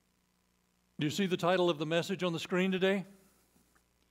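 An older man speaks calmly through a microphone.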